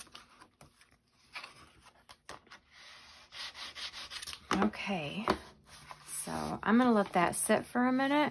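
Stiff paper pages rustle and flip close by.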